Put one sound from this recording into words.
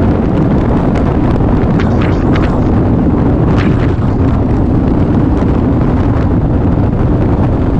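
Tyres roar on a rough road surface.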